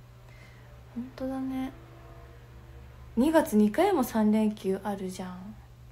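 A young woman speaks softly and close up into a microphone, with pauses.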